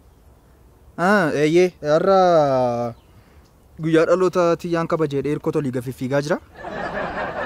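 A young man talks on a phone close by, with animation.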